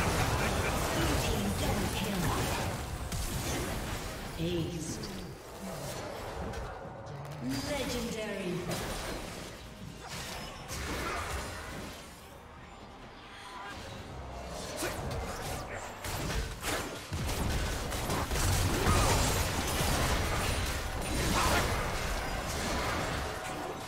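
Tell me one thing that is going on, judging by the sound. Magic blasts and blows crash and crackle in a busy video game battle.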